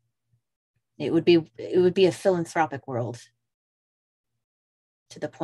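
A man speaks with animation through a headset microphone, heard over an online call.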